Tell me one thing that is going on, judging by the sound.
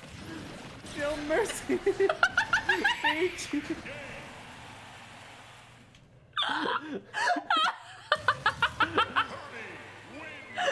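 A young woman laughs loudly into a microphone.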